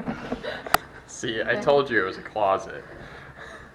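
A man laughs and talks excitedly close by.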